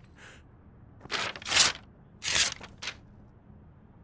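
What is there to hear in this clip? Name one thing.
Paper rustles and crinkles as a sheet is handed over.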